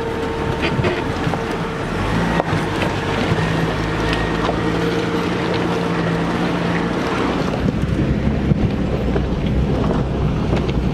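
A Jeep XJ engine hums as it drives along a trail.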